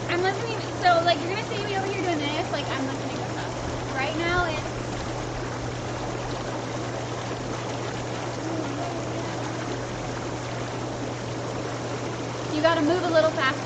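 Young women talk and laugh together close by.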